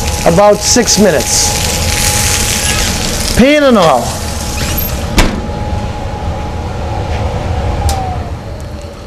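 A gas burner hisses steadily.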